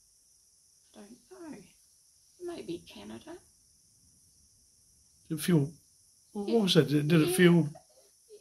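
An elderly woman speaks calmly and close by, in short phrases with pauses.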